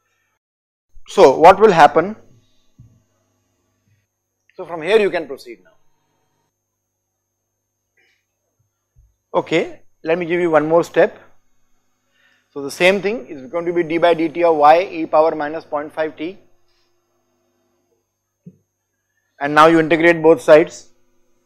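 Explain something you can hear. A middle-aged man speaks calmly into a microphone, in short phrases with long pauses.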